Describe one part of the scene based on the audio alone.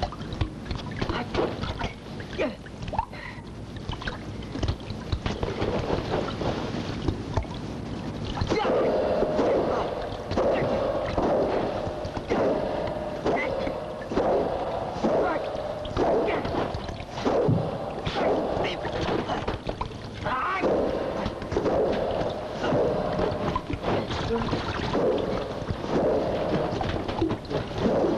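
Wooden staffs whoosh and clack together in a fight.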